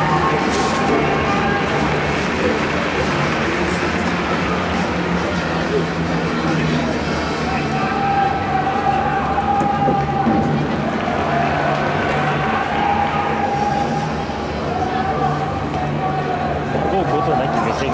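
A large crowd murmurs and chatters in an echoing stadium.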